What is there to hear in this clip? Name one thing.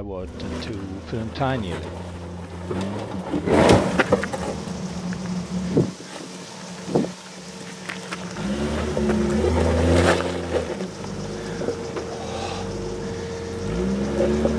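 Tyres crunch and knock over loose rocks.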